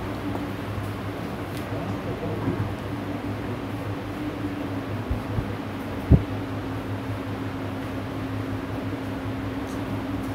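A man speaks near a microphone.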